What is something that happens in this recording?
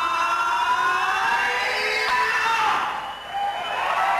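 A young woman sings into a microphone over a loudspeaker.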